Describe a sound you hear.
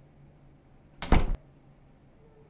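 A door latch clicks loudly as a door opens.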